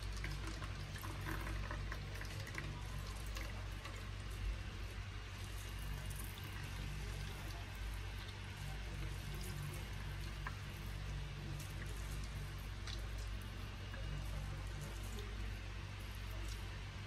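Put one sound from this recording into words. Liquid drips into a bowl.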